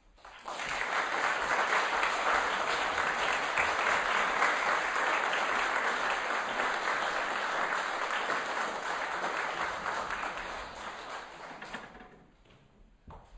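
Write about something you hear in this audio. An audience claps loudly, then the applause dies away.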